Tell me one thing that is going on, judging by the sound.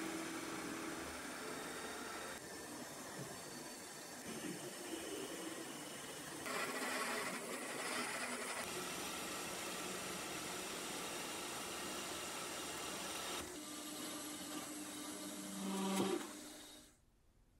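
A metal lathe hums steadily as it spins.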